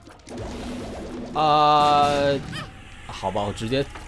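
Video game explosions burst with a loud splat.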